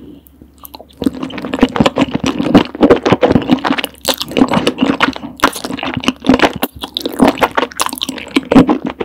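A woman slurps and chews soft, saucy noodles close to a microphone.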